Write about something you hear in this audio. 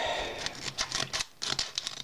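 Scissors snip through a plastic wrapper.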